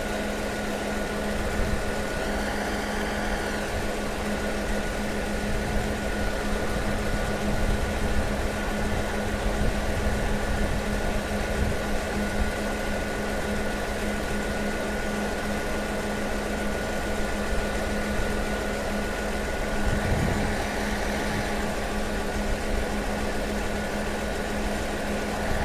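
A diesel locomotive rumbles steadily as it approaches slowly.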